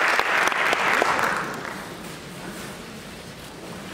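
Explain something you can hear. Musicians shuffle as they sit down on their chairs.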